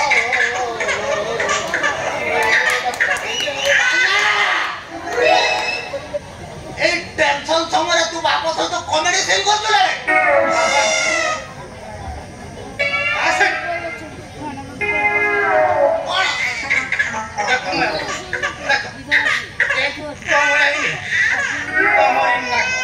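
Men speak loudly and with animation through loudspeakers outdoors.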